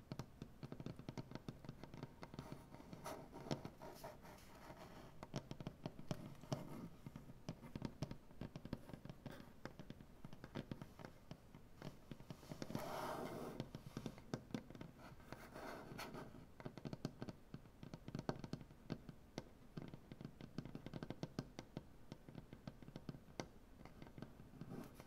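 Fingernails tap and scratch rapidly on a wooden surface, close up.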